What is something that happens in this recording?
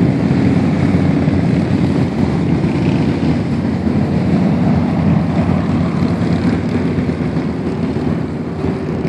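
Motorcycles rumble past in a steady stream.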